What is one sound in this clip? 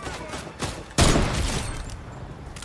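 A sniper rifle fires a single loud shot with a booming tail.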